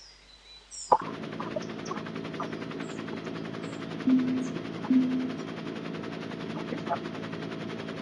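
A bicycle on an indoor trainer whirs steadily as a rider pedals.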